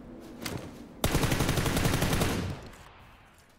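A rapid burst of automatic gunfire rattles loudly.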